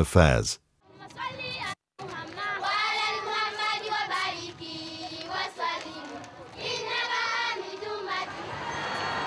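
A group of girls sings and chants loudly outdoors.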